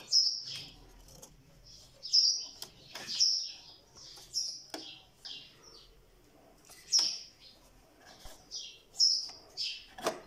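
Fingers click and rattle small plastic parts inside a printer.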